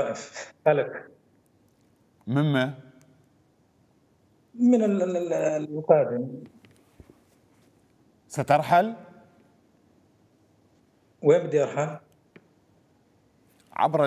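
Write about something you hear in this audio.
A middle-aged man speaks calmly in bursts over an online call, with pauses between phrases.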